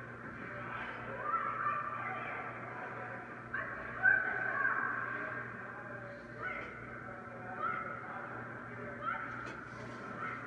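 Skate blades scrape across ice in a large echoing rink.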